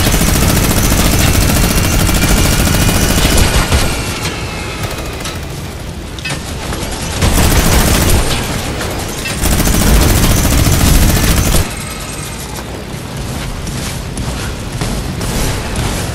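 A propeller plane engine drones loudly.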